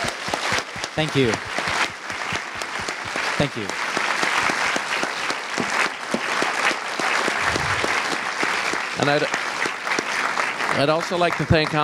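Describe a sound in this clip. An audience claps and applauds in a hall.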